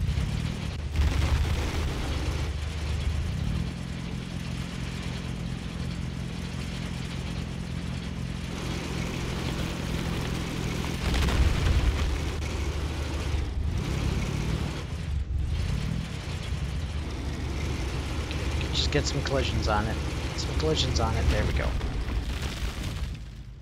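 A drill grinds against rock.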